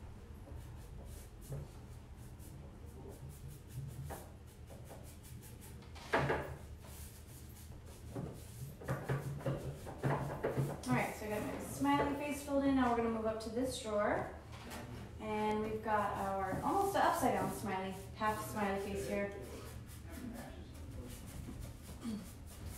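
A paintbrush brushes softly against wood.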